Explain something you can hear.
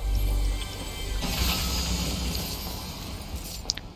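A treasure chest creaks open.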